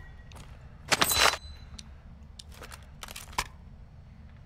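A weapon is picked up with a metallic clack.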